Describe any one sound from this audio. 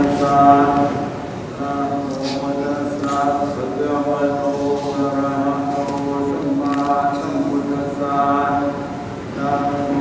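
Men chant together in a low, steady drone, heard through a microphone.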